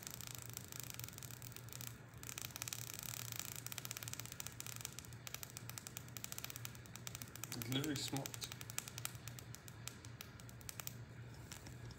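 An electric bug zapper crackles and snaps as an insect is shocked.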